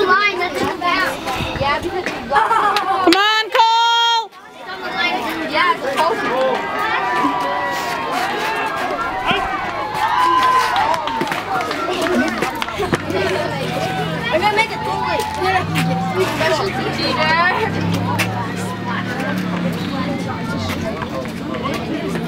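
A crowd of spectators talks and cheers outdoors.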